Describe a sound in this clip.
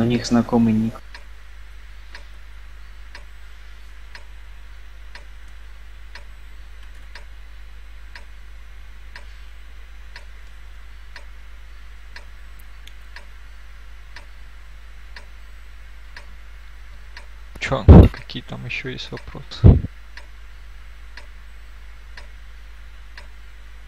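A game countdown timer ticks once every second.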